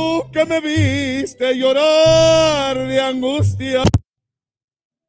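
Men sing loudly together, heard over an online call.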